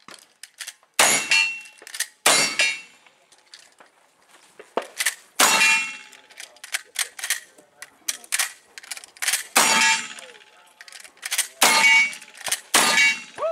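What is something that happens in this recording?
Metal targets ring with a clang when hit.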